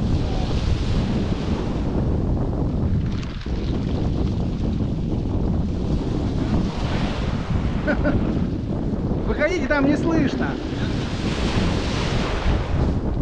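Wind rumbles.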